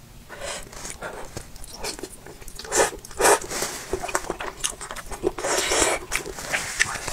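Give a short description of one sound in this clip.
A young woman slurps noodles close to a microphone.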